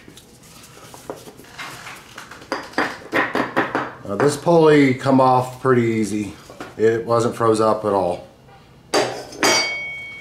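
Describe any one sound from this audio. Metal parts clink and rattle as they are handled.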